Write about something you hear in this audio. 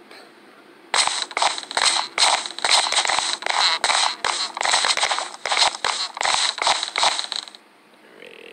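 Wooden blocks thud and knock as they are placed in quick succession.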